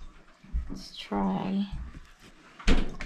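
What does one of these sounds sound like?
A woman talks casually close by.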